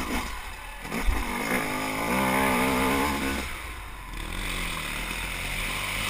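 A dirt bike engine revs and drones up close.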